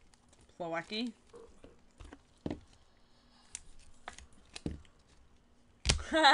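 Gloved hands handle a plastic card case with light clicks and taps.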